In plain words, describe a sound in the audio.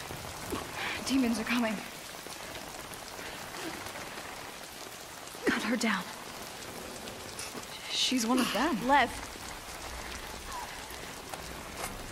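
A young woman speaks tearfully and close by.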